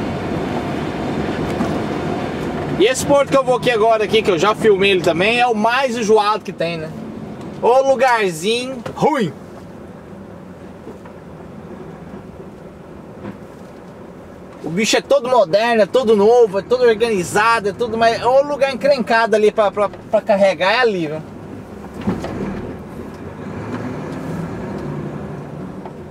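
A truck engine hums steadily from inside the cab.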